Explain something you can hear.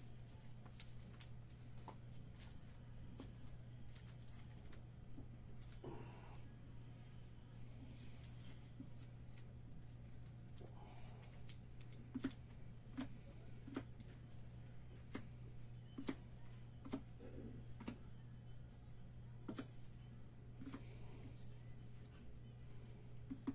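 Trading cards tap and click as they are handled up close.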